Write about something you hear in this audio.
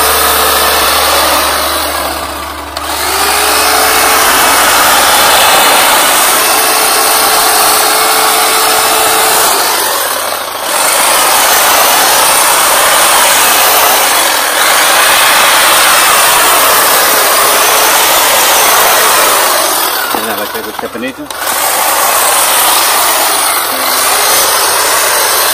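An electric hedge trimmer buzzes loudly as it cuts through leafy branches.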